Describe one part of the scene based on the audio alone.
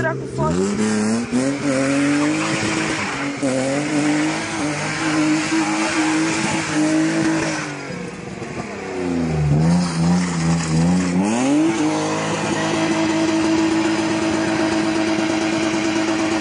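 Tyres squeal on pavement as a car spins.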